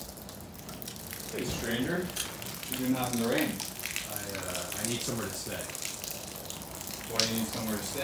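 Heavy rain pours down outside an open door.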